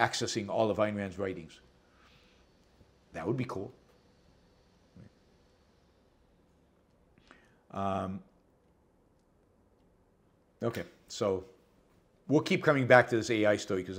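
An elderly man speaks calmly and haltingly into a nearby microphone, with long pauses.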